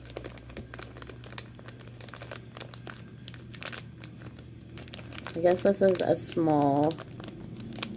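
Plastic crinkles and rustles in a woman's hands.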